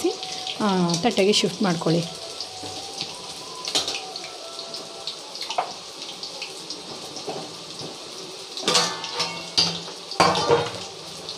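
Oil sizzles and crackles steadily as food fries.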